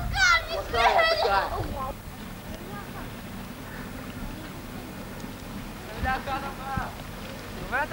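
Men and women talk nearby with animation.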